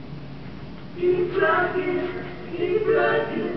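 Music plays from a vinyl record.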